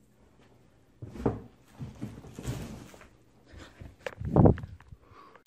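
A phone knocks and rubs against a carpet.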